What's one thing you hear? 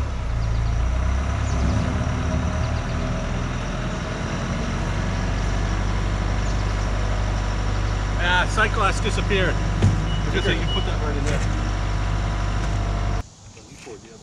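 A skid steer loader's diesel engine idles loudly close by.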